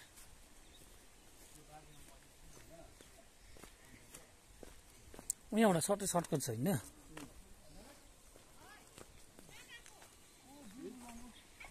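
Footsteps scuff along a dirt path outdoors.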